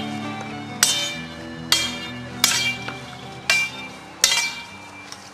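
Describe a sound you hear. Wooden swords clack sharply against each other.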